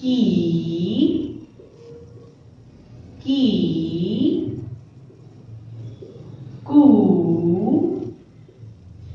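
A young woman speaks slowly and clearly, drawing out each sound, close by.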